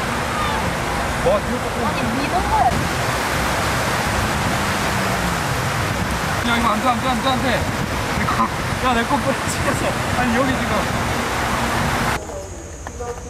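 Waves wash onto a beach steadily.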